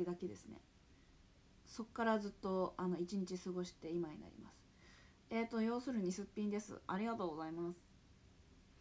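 A young woman speaks softly and casually close to a microphone.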